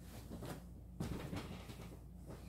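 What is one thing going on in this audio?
Bare feet thump on a hard floor as a girl lands from a cartwheel.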